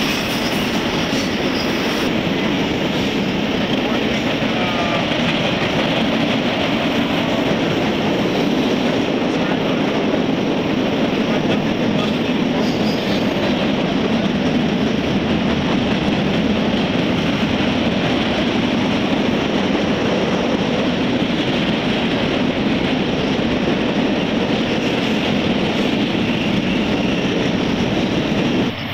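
Train wheels clatter steadily over the rails.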